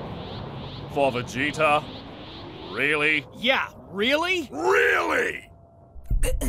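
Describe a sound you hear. Two men shout in alarm.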